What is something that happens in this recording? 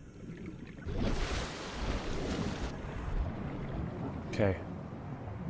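Water splashes and laps as a swimmer breaks the surface.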